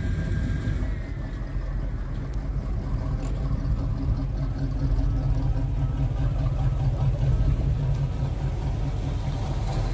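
A classic car's engine idles and rumbles as the car rolls slowly past.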